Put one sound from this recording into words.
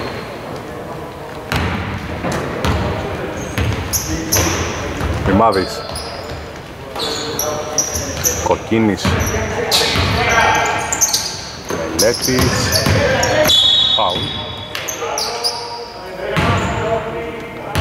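A basketball bounces on a wooden floor, echoing around a large empty hall.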